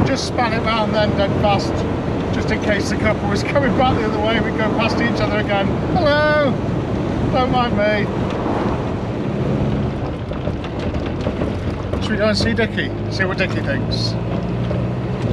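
A man talks cheerfully and laughs close by.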